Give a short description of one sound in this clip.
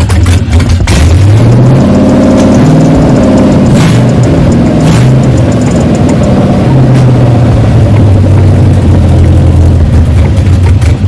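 A car engine revs up and down several times.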